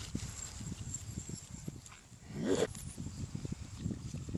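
A dog runs across sand with quick pattering steps.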